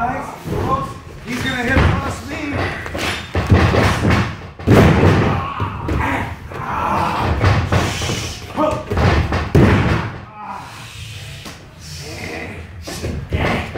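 Bodies slam heavily onto a springy mat.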